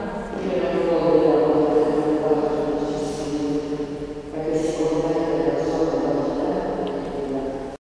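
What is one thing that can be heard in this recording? A woman sings slowly through a microphone in a large echoing hall.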